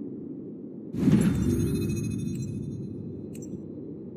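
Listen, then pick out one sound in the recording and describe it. A deep whooshing hit booms and slowly fades.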